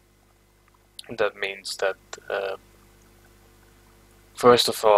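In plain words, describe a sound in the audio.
A young man talks casually and close into a microphone.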